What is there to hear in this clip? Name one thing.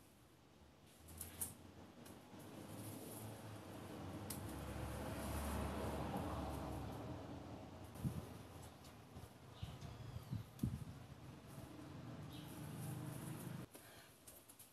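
Leaves rustle as a plant is handled.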